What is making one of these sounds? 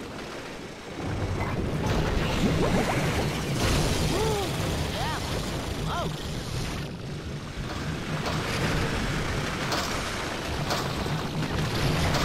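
Magic blasts zap and whoosh in a cartoon battle.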